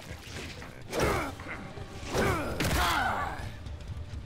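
A young woman cries out in pain.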